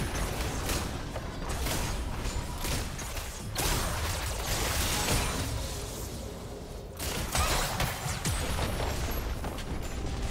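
Game combat sounds of clashing weapons and magic blasts crackle and thump.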